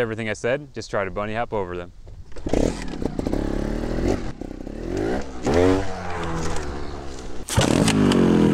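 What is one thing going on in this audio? A motorcycle engine revs in short, sharp bursts nearby.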